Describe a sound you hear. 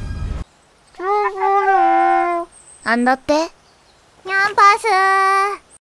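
A young girl speaks in a high, playful, singsong voice.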